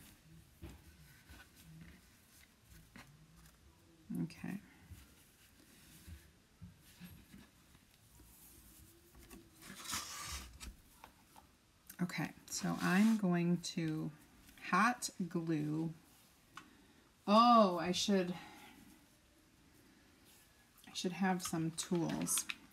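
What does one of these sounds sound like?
Burlap ribbon rustles softly under hands.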